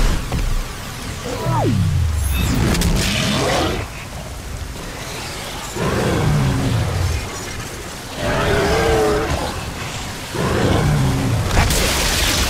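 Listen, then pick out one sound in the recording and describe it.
A monster roars and growls deeply.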